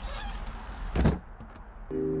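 A wooden door bangs open.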